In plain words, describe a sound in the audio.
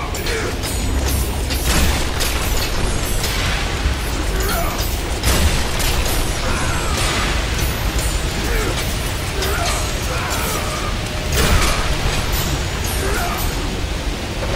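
Blades whoosh and clash in quick swings.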